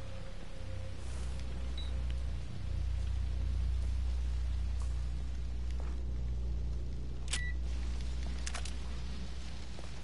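A fire roars with a deep, low rumble.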